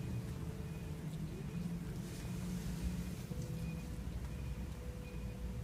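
Hands rub and knead oiled skin with a soft swishing sound.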